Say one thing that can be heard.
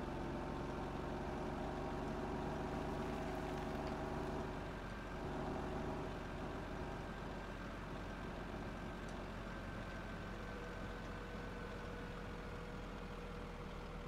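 A wheel loader's diesel engine rumbles and whines steadily.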